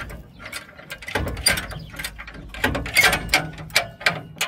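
A metal bar clanks and scrapes against rusty metal.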